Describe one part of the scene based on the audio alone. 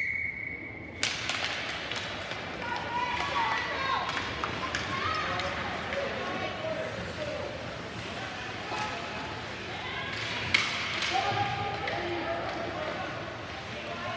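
Young spectators shout and cheer nearby in an echoing rink.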